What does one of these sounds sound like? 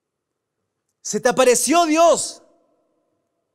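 A man speaks briefly into a microphone, heard through a loudspeaker.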